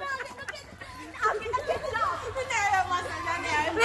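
A teenage boy talks and laughs nearby.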